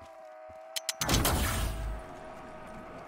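A weapon fires with a loud blast that booms and rumbles.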